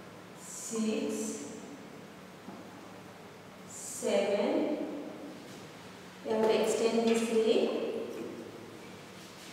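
A woman speaks calmly and clearly.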